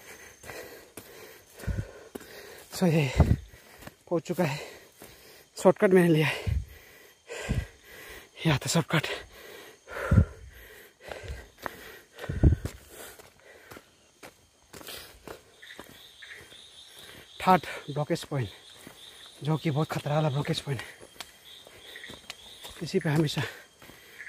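Footsteps thud on a dirt path.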